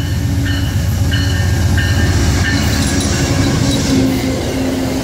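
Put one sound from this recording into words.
A diesel locomotive rumbles past close by.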